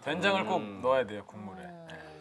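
A young man speaks with animation.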